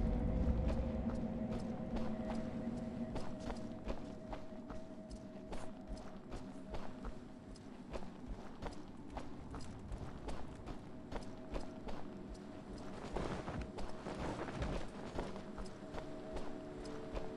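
Armoured footsteps run at a steady pace.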